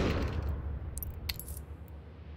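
A short click sounds.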